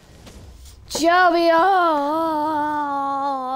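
A young man lets out a long, drawn-out cry close to a microphone.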